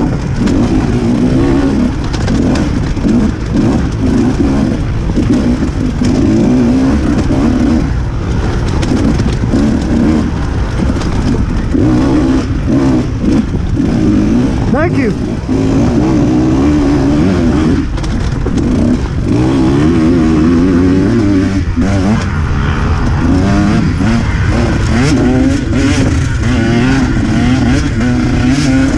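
A dirt bike engine buzzes and revs up and down close by.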